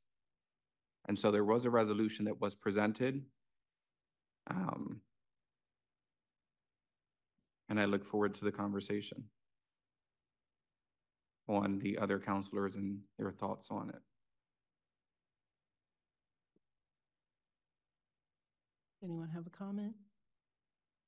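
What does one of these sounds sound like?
A man speaks calmly through a microphone, in short bursts with pauses.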